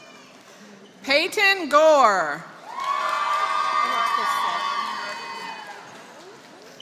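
A crowd cheers and whoops loudly in a large hall.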